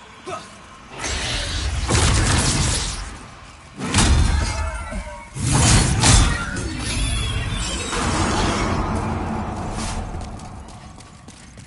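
A magic blast roars and crackles loudly.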